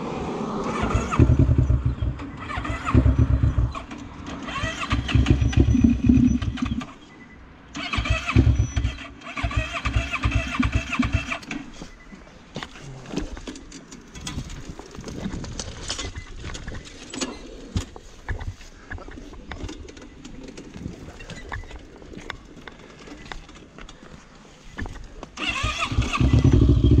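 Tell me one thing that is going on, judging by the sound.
A quad bike engine revs up in short, loud bursts.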